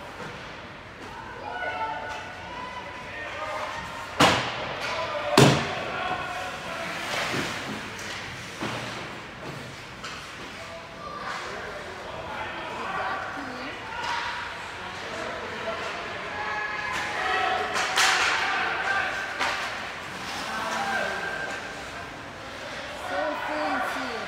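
Young players shout to each other across an echoing rink.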